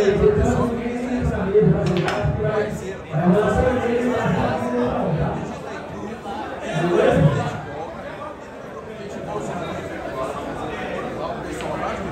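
A crowd murmurs nearby.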